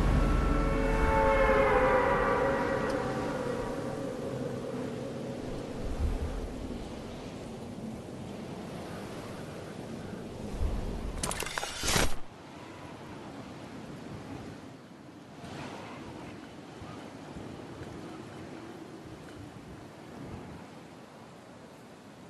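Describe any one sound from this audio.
Wind rushes steadily, loud at first and slowly easing.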